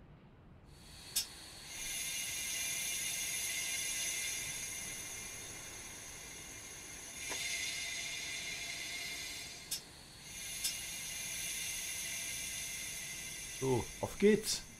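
A stopped train hums and whines steadily.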